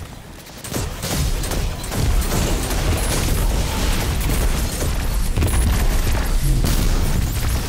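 Gunfire crackles rapidly with electric zaps.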